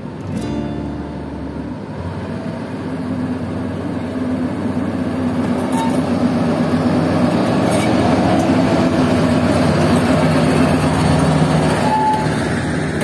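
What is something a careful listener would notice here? A diesel locomotive engine rumbles closely as it passes.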